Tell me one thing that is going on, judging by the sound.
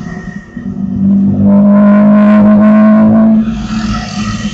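A car engine drones loudly as the car drives close past.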